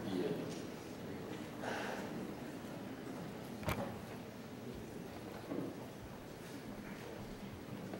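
Men talk quietly in a large echoing hall, heard from a distance.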